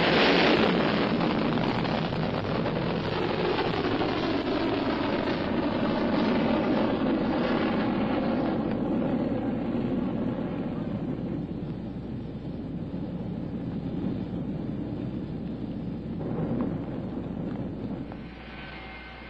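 A rocket engine roars loudly and steadily, slowly fading.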